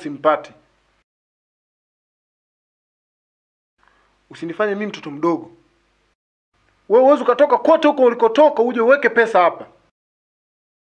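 A young man speaks tensely, close by.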